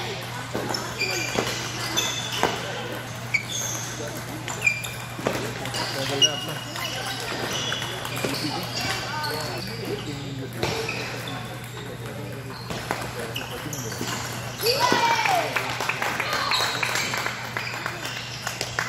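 Shoes squeak sharply on the floor.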